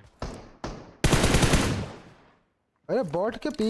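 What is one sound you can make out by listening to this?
A rifle fires in a video game.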